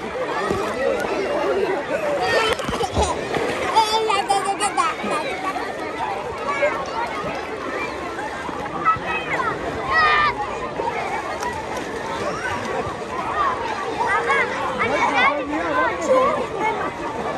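Many children shout and laugh in an outdoor pool.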